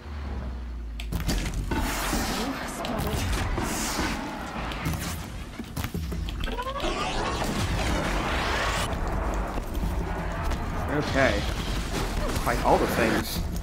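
Machines clank and roar in a fight.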